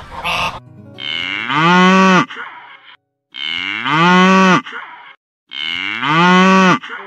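A cow moos loudly, again and again.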